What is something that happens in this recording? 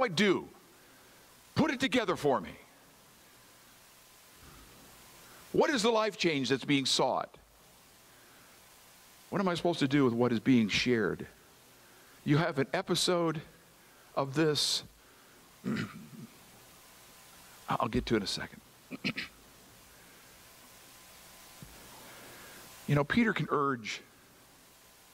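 An older man speaks slowly through a microphone, with pauses, in an echoing hall.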